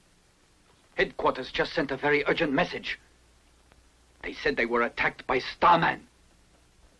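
Men speak in turns nearby.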